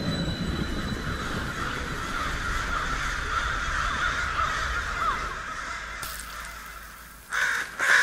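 Wind blows strongly outdoors.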